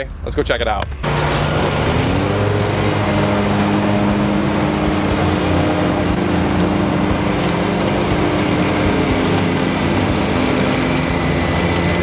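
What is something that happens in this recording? A mower engine runs steadily and revs up.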